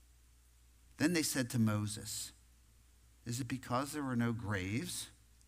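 An older man speaks calmly into a microphone in a reverberant hall, with long pauses.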